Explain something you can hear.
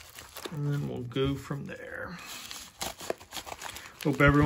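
Scissors snip through a plastic mailer.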